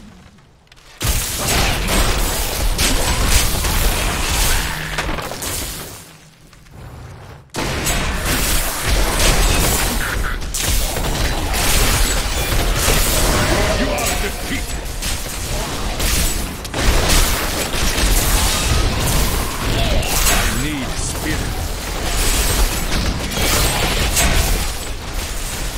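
Magic spells crackle and blast in a fast game battle.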